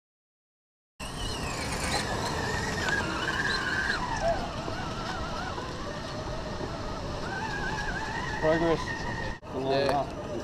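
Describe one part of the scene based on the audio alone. A small electric motor whines as a toy truck crawls over rock.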